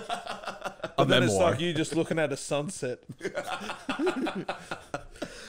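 A second man laughs into a close microphone.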